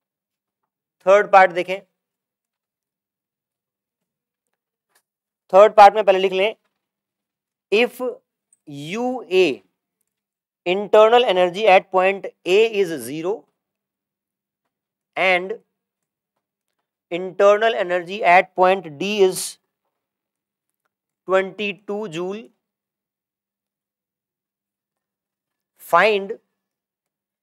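A man speaks in short bursts, explaining calmly, close by.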